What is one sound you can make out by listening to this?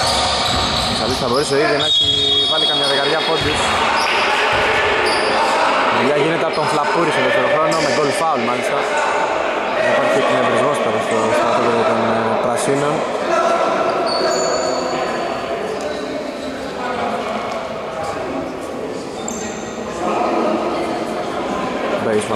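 Men on a team shout and call out to one another.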